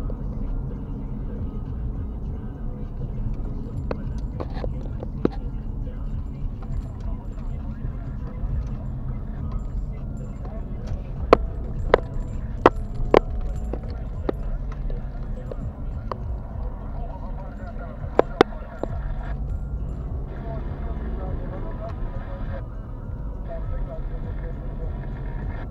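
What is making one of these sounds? A car engine hums steadily with road rumble from inside the cabin.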